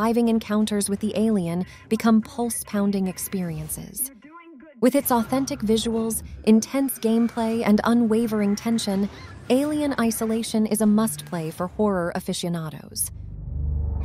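A young woman speaks tensely and breathlessly.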